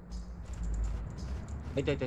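Flames crackle softly.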